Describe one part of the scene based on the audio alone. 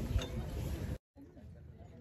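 A crowd of men murmurs close by.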